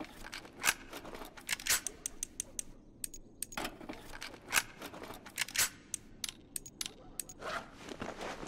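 Menu selections click sharply, one after another.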